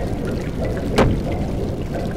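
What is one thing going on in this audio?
A sharp blow lands with a thud.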